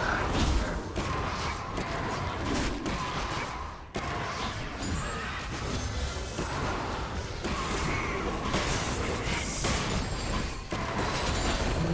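Fantasy battle sounds of spells and weapon hits crackle and whoosh.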